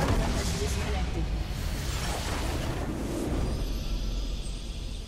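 A large explosion booms and crackles, then rumbles away.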